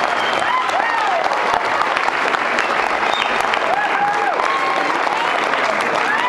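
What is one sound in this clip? People clap their hands nearby.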